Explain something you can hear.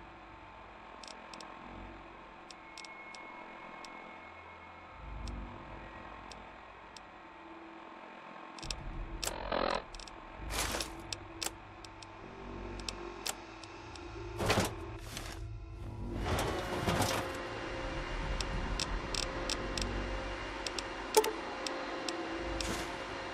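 Short soft clicks tick as menu items are selected.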